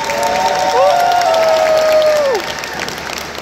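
A crowd in a large hall cheers and whistles.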